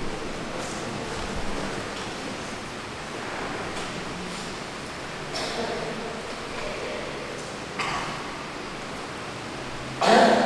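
A middle-aged woman reads aloud calmly into a microphone in a reverberant hall.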